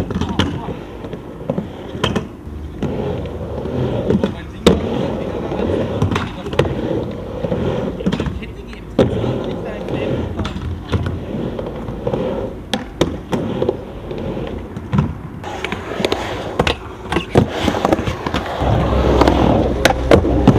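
Skateboard wheels roll and rumble on a wooden ramp.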